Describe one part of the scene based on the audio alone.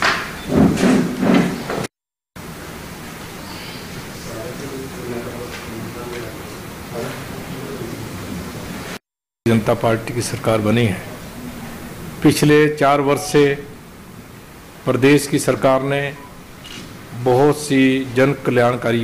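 A man speaks calmly into a nearby microphone.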